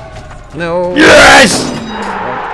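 A football is kicked hard into a goal.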